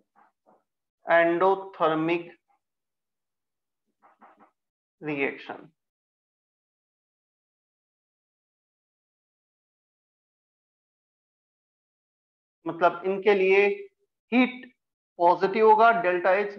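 A man speaks calmly through a close microphone, in short bursts with pauses.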